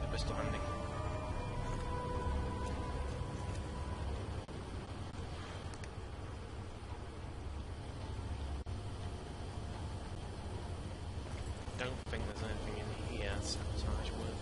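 A low mechanical hum drones steadily throughout.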